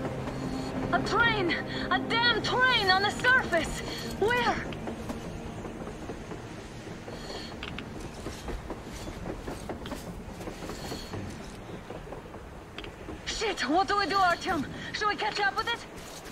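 A woman speaks urgently nearby.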